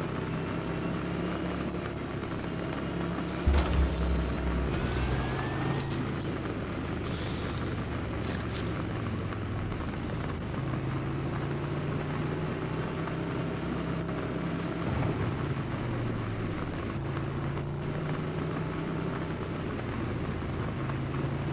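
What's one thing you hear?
Tyres rumble over a dirt road.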